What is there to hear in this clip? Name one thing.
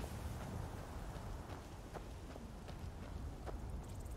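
A small flame crackles and whooshes softly.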